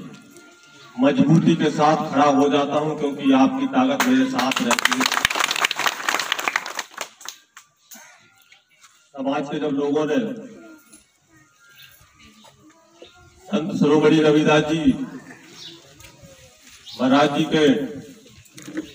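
A man speaks loudly into a microphone, heard through a loudspeaker, in bursts with pauses.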